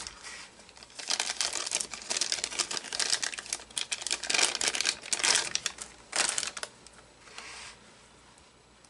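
A plastic bag crinkles and rustles as hands handle it.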